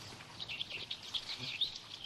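Sheep shuffle and graze close by.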